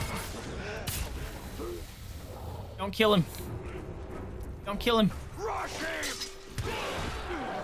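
Swords clash and ring sharply.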